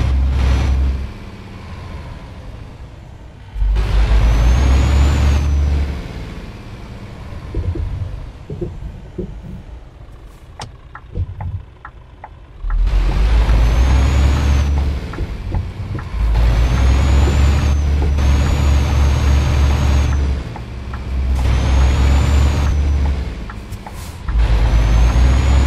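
A truck engine rumbles steadily and roars loudly in repeated bursts.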